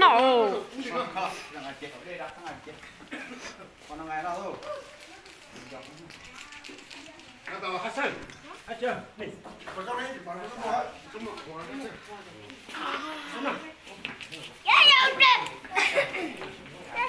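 Several people talk and call out nearby.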